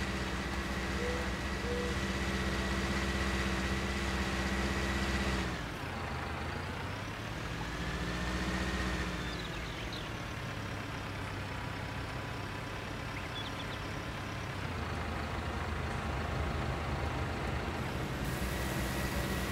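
A tractor engine rumbles steadily and shifts in pitch as the tractor drives and turns.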